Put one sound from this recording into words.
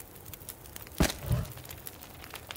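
A wooden log thuds down onto a fire.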